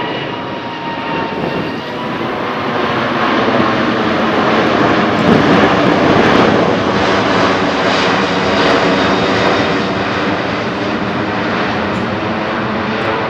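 A large jet airliner roars loudly overhead, its engines swelling as it passes and then slowly fading.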